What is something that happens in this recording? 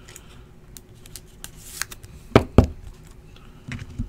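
Trading cards in plastic sleeves click and rustle as hands sort them.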